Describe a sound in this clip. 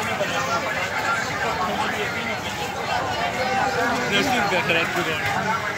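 A crowd of men chatter in a busy outdoor market.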